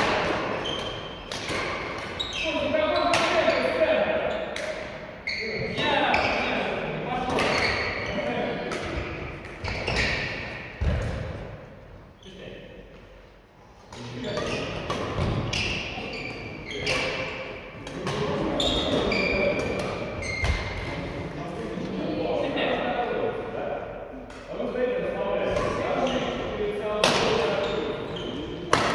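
Shuttlecocks are struck with rackets in a large echoing hall, with sharp pops.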